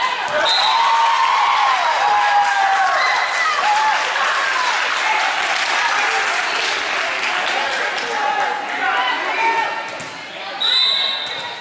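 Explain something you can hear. A crowd of young people cheers and shouts in a large echoing hall.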